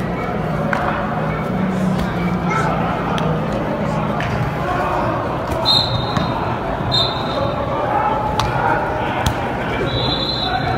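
Several men shout and call out nearby.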